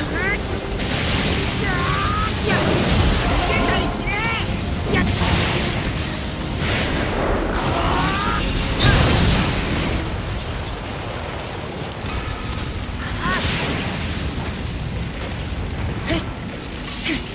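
Rushing air whooshes past in loud bursts.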